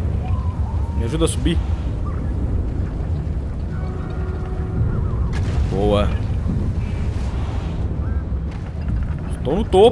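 Wind blows steadily with a low rumble.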